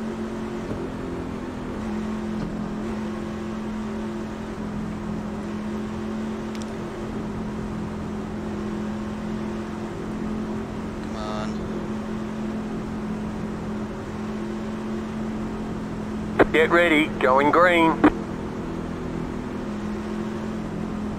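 A race car engine drones steadily at low revs.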